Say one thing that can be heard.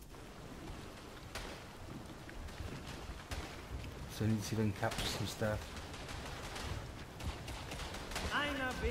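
Footsteps run over rough ground.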